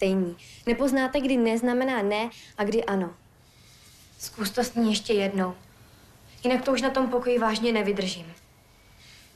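A young woman speaks earnestly and close by.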